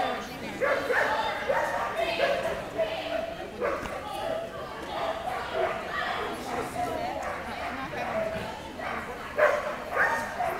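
A man calls out loudly and with energy in a large open space.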